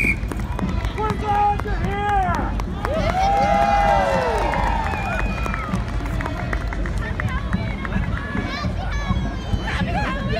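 A crowd of onlookers cheers and whoops loudly outdoors.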